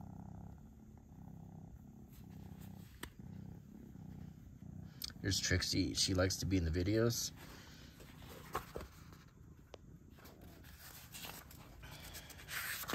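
Paper pages rustle as they are handled.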